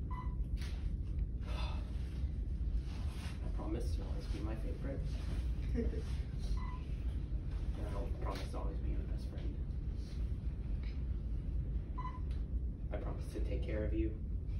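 A young man reads out vows calmly, close by.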